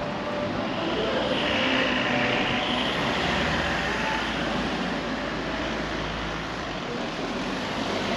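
A car drives slowly past on a cobbled street.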